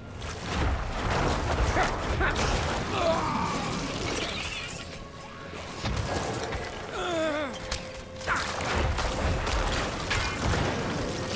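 Weapons clash and magic bursts in a fast video game battle.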